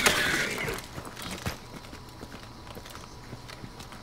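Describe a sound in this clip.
A rifle is handled with sharp metallic clicks.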